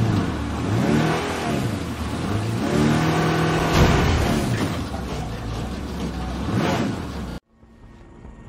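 A vehicle engine revs and roars, rising and falling in pitch.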